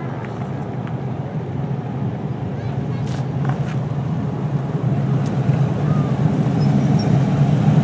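An SUV rolls slowly past.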